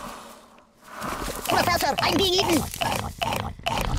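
A cartoon monster plant chomps and munches noisily.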